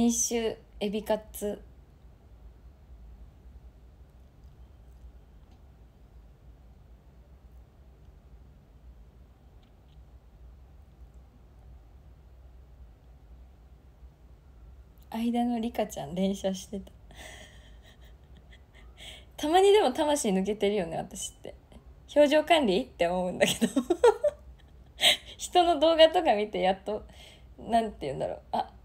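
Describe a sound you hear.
A young woman talks brightly into a close microphone, with long pauses.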